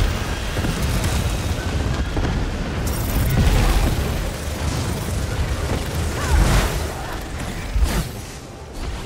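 Magic blasts boom and crackle in a loud fight.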